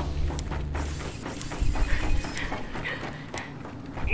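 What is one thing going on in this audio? Heavy footsteps clank on metal.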